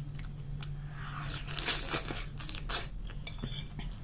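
A young woman chews and slurps food close to a microphone.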